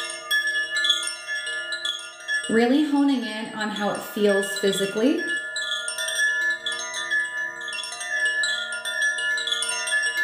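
Metal wind chimes ring with bright, overlapping tones.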